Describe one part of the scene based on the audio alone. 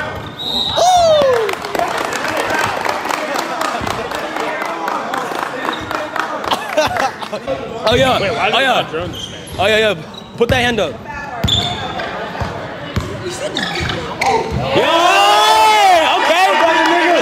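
Young spectators shout and cheer in an echoing gym.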